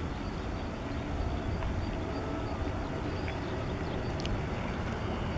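A jet airliner's engines roar low and steady as it approaches.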